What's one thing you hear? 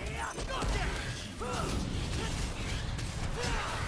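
Monsters screech and shriek.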